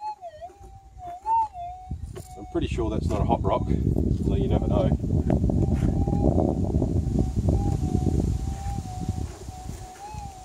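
A metal detector beeps with a steady, wavering tone.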